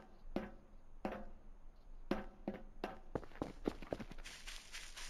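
Footsteps thud on hard concrete.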